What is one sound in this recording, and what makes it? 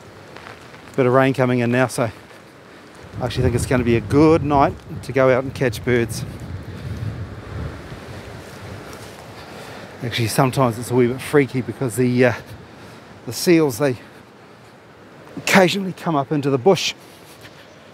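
A middle-aged man talks calmly and close into a clip-on microphone, in short bursts.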